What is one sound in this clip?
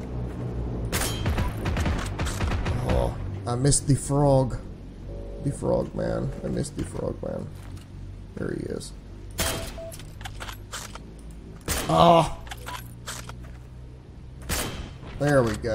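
A rifle fires sharp, loud shots with a short echo.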